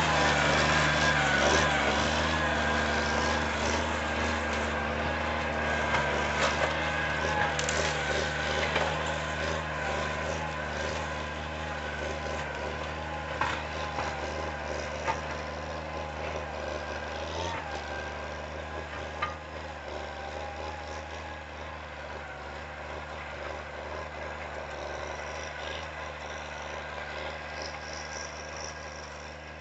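A tractor engine drones steadily and slowly grows fainter.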